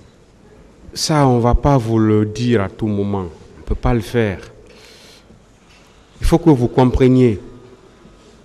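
A man speaks firmly into a microphone.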